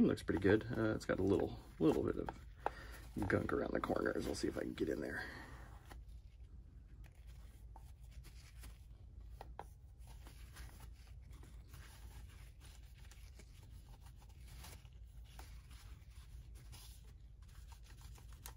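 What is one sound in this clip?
A cloth rubs and squeaks against a plastic casing.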